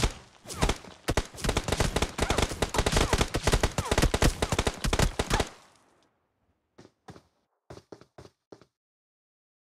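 Footsteps patter quickly over rock.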